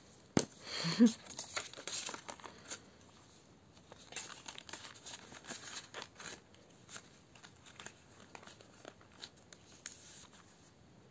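Paper and plastic sleeves rustle as they are handled.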